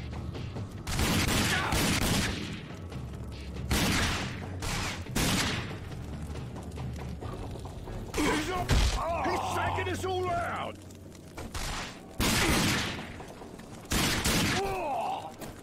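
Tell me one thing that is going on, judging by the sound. A pistol fires loud shots one after another.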